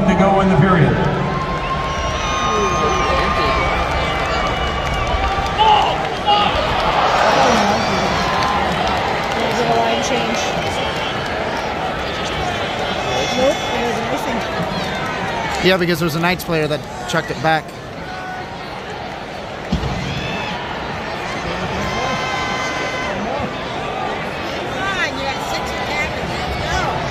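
A large crowd murmurs and chatters in a big echoing arena.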